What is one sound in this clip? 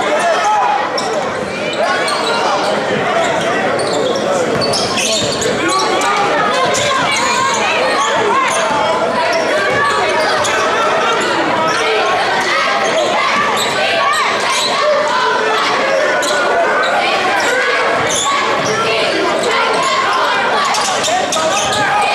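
A crowd of spectators chatters and cheers in an echoing gymnasium.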